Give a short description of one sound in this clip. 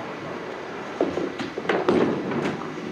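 A bowling ball thuds onto a wooden lane and rolls away.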